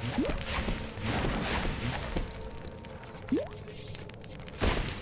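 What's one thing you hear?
Game objects smash apart with sharp crashes.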